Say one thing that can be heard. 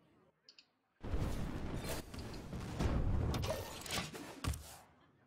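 A magical attack bursts with a loud crackling whoosh.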